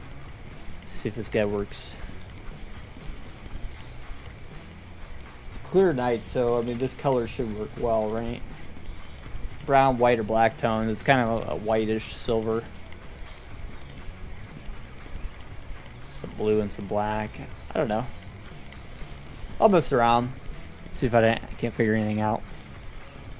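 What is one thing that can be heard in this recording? A young man talks into a close microphone in short, animated bursts.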